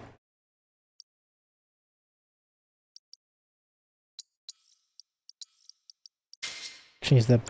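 Short electronic menu blips chime as a cursor moves.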